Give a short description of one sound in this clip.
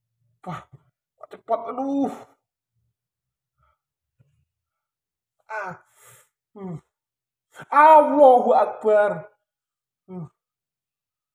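A man speaks calmly nearby in short phrases.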